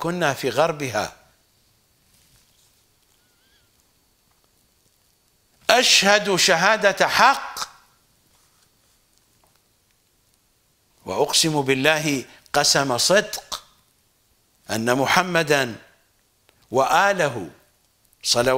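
An elderly man speaks with animation into a close microphone, in short phrases broken by pauses.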